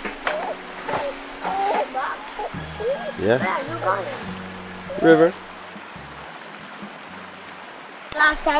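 A shallow stream trickles over stones.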